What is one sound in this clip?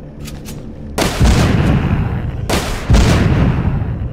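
A heavy mounted gun fires loud booming bursts.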